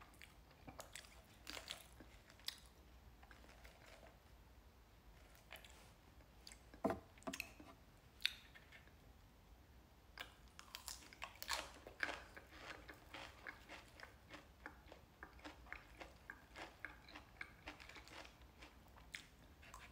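A fork clinks and scrapes in a plastic salad bowl.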